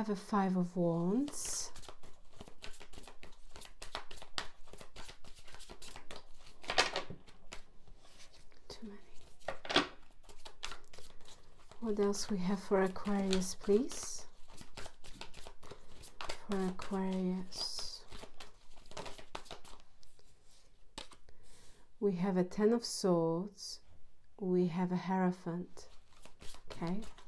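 Playing cards are shuffled with quick, soft riffling clicks.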